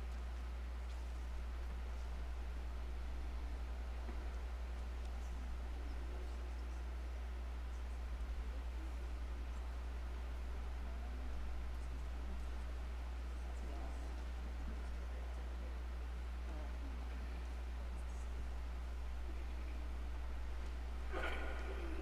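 A man speaks quietly at a distance in an echoing hall.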